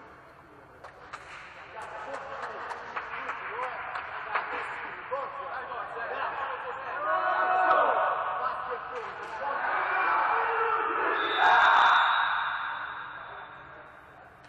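Young men shout and cheer together in a large echoing hall.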